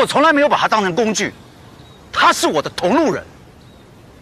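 A man speaks calmly and earnestly, close by.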